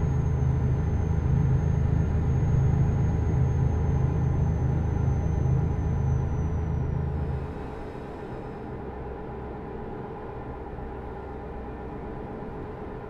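Tyres rumble over a snowy road.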